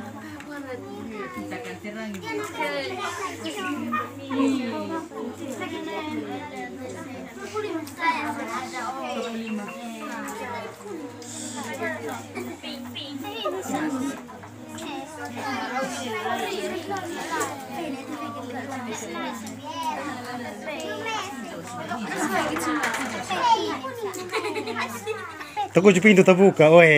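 Many children chatter and call out close by.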